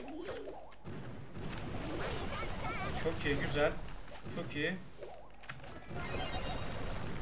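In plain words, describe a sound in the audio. Game sound effects of blasts and hits play.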